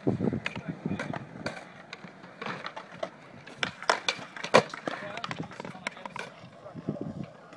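Skateboard wheels roll briefly on concrete.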